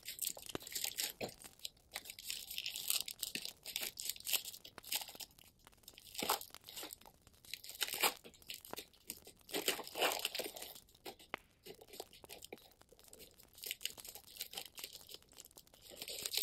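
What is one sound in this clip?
Plastic sleeves crinkle and rustle close by.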